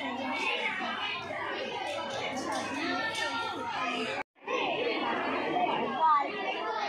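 Young children chatter and call out close by, outdoors.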